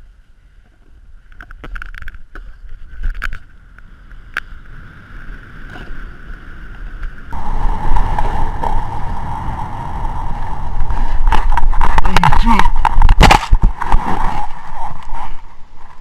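A snowboard scrapes and hisses over snow.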